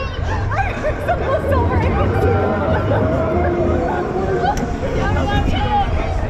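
A fairground ride rumbles and whirs steadily.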